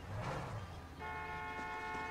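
A truck engine hums close by.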